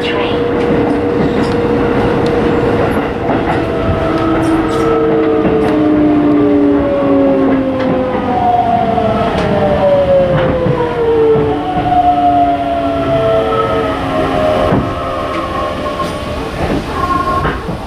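A train rolls along the tracks with a steady rumble and slows down.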